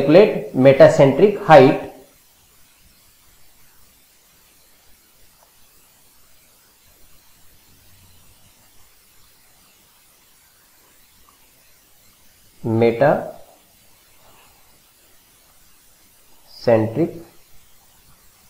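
A man speaks calmly into a close microphone, in short phrases with long pauses.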